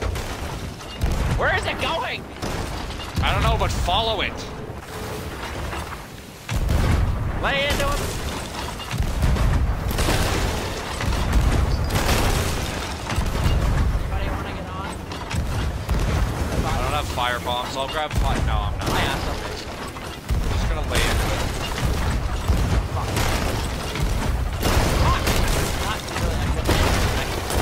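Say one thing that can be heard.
Rough sea waves wash and crash.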